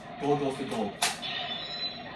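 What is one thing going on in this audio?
A plastic toy belt clicks sharply.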